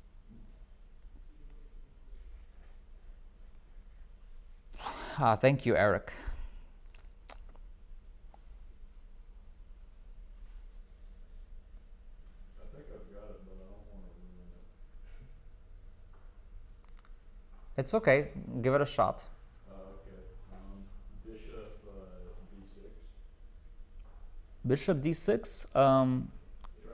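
A young man talks calmly and casually into a close microphone, with pauses.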